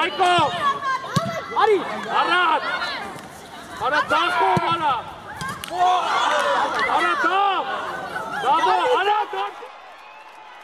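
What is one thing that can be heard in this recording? Spectators and children shout and cheer outdoors.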